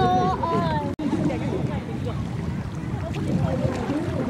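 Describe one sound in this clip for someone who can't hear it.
A paddle dips and swishes through water.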